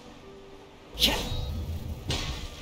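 A blade slashes with a sharp whoosh.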